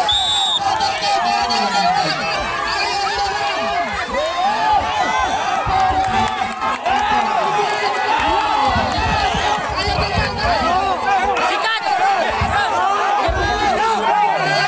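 A crowd outdoors cheers and shouts with excitement.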